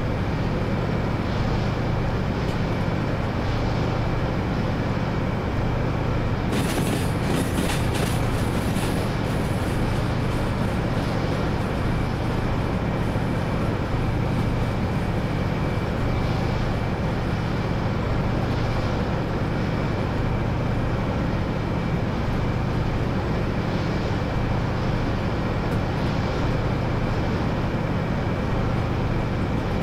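Train wheels clatter rhythmically on the rails.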